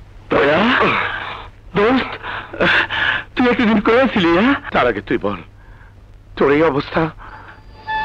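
A man speaks angrily, close by.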